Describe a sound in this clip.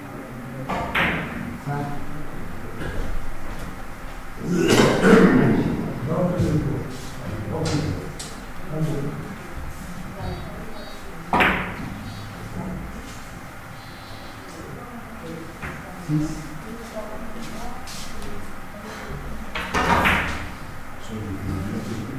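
Billiard balls click against each other and knock off the cushions.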